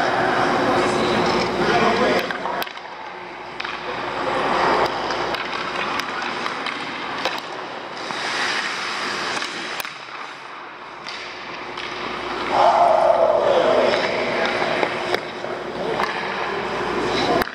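Skates scrape across the ice in a large echoing rink.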